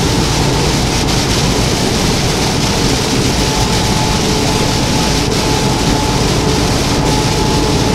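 Windshield wipers swish across the glass.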